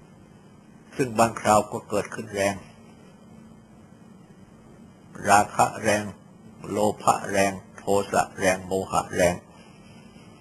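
An elderly man speaks calmly and slowly.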